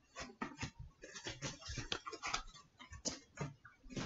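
A glass bottle is set down on a surface with a knock.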